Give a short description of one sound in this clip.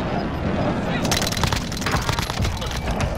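Gunshots fire in rapid bursts from close by.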